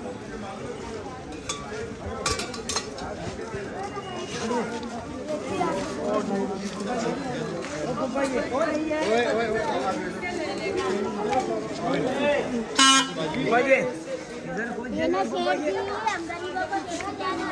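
A crowd of men and women talk and call out all around, outdoors.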